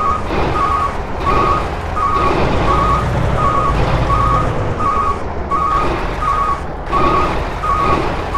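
A truck engine rumbles steadily at low idle.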